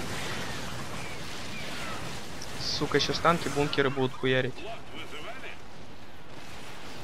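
Guns fire rapidly and small blasts crackle in a battle.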